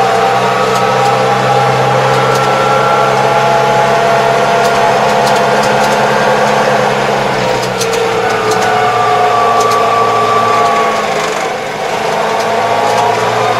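Tyres rumble over a paved road.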